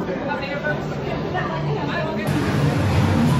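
A crowd of people chatter nearby.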